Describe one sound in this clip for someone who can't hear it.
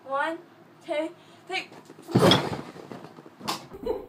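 Two girls talk and laugh close by.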